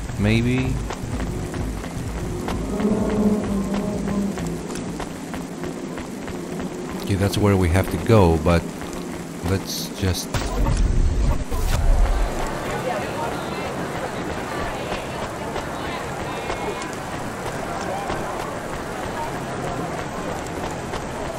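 Footsteps tap on a metal walkway.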